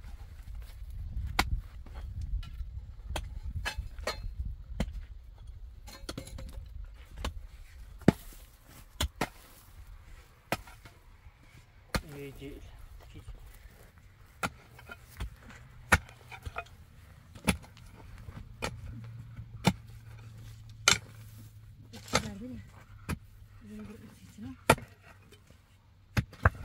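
A pickaxe strikes hard dry earth again and again.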